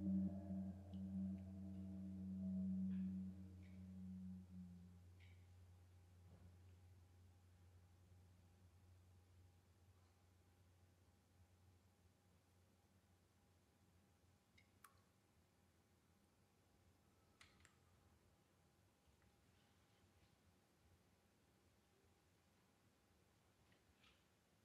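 A percussionist lightly taps metal percussion now and then.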